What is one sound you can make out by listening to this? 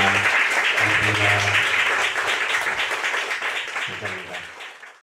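A crowd applauds in a room, then the clapping fades away.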